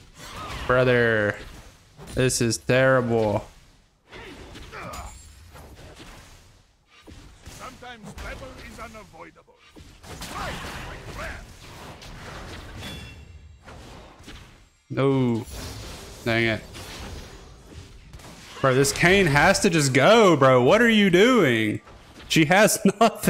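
Game spell and attack effects whoosh and crackle.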